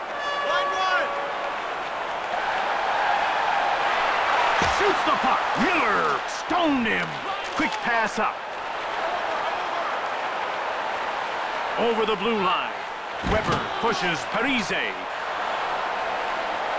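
An arena crowd roars and murmurs.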